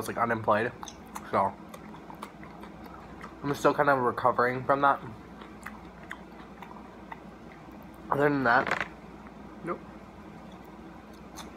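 A young man crunches on a cucumber slice.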